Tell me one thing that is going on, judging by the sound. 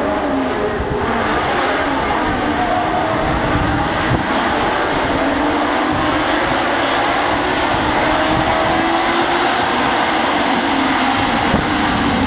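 Many racing cars roar away, engines rising in pitch as they accelerate.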